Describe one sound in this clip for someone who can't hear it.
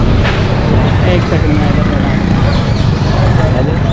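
A motorcycle engine runs close by.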